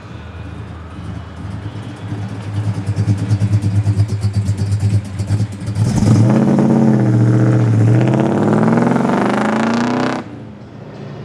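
A powerful car engine rumbles loudly and revs as the car drives past and away.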